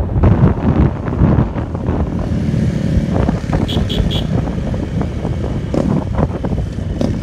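A motorcycle engine hums steadily as it rides along outdoors in rushing wind.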